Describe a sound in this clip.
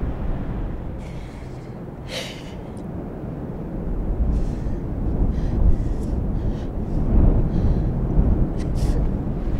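A woman sobs and cries close by.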